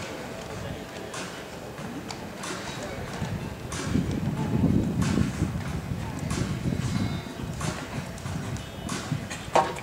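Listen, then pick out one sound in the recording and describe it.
A horse's hooves thud on soft sand as it canters.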